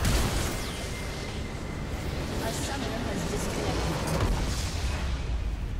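Spells crackle and whoosh in a game battle.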